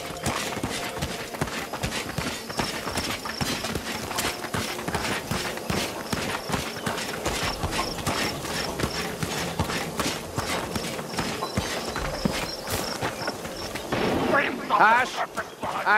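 Quick footsteps run over dirt and stone.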